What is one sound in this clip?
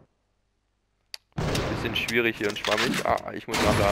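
A pistol magazine clicks during a reload.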